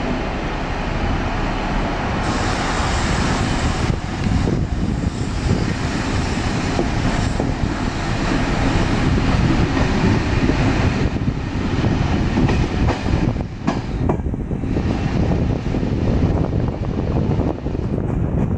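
Train wheels clatter over rail joints and points.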